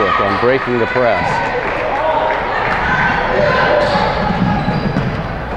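Young women shout and cheer loudly in an echoing gym.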